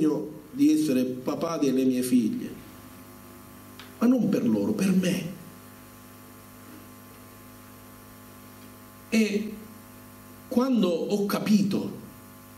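A middle-aged man speaks calmly into a microphone over loudspeakers, with pauses, in an echoing hall.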